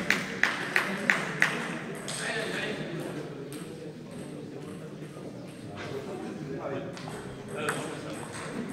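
A table tennis ball clicks sharply on a table and bats, echoing in a large hall.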